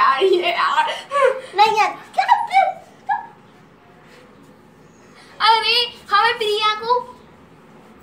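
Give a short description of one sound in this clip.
Young girls talk with animation, close by.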